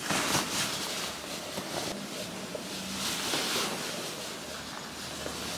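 Fabric rustles and brushes right up close.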